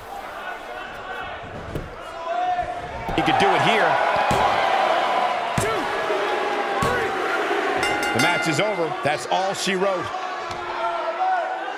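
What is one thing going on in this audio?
A large crowd cheers and roars.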